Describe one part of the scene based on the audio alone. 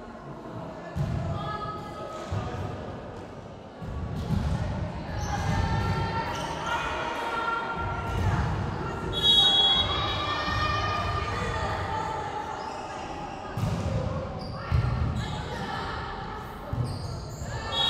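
A volleyball is struck with sharp thuds in an echoing gym.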